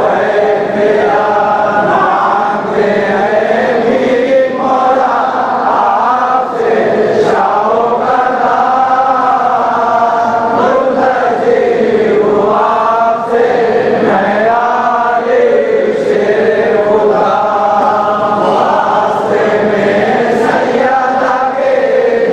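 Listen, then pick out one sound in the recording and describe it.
A crowd of men chants together in a large echoing hall.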